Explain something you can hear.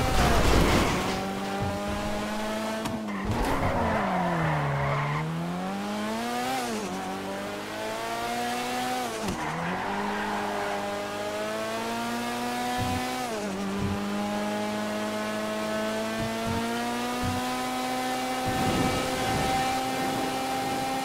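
A car engine hums steadily, its pitch dipping and rising as it slows and speeds up.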